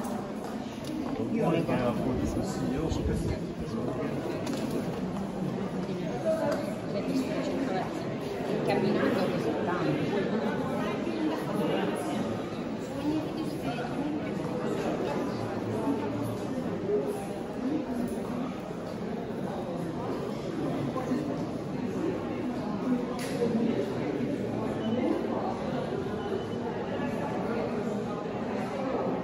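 A crowd of visitors chatters in a large echoing hall.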